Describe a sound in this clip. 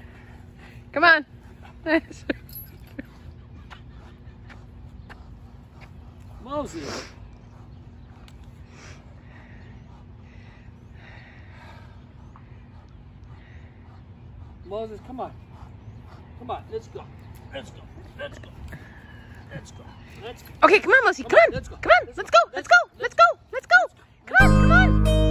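A large dog barks and whines in short bursts.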